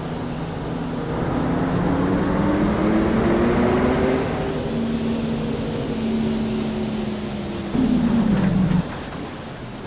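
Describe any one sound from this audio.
A bus engine hums and whines as the bus drives along, then slows down.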